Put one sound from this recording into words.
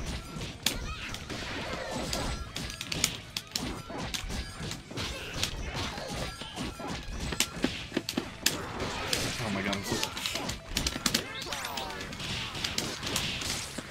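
Punches and blows land with sharp smacks in quick succession.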